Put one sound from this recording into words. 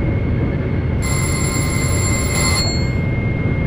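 A short beeping alarm sounds in the cab.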